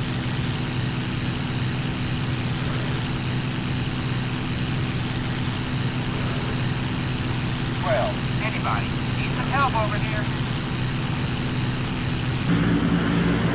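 A propeller plane's engine drones steadily from inside the cockpit.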